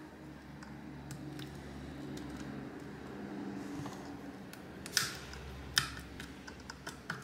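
Plastic parts click and rattle as hands pry open a small device.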